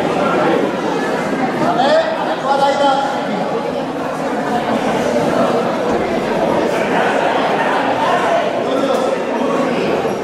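A crowd murmurs and chatters in a large echoing hall.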